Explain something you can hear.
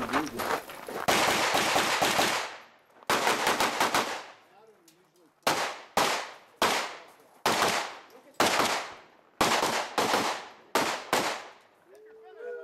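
Gunshots crack in quick bursts, echoing outdoors.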